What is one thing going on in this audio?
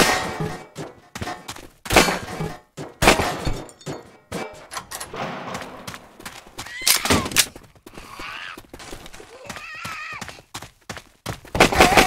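A gun fires rapid bursts of loud shots.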